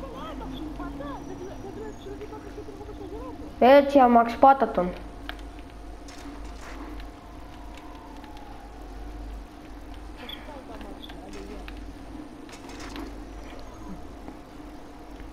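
A bicycle rolls along a paved road.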